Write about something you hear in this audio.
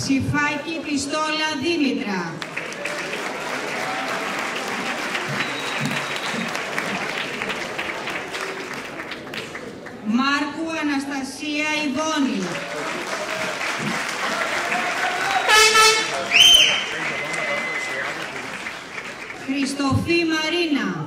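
A large crowd of young people murmurs together.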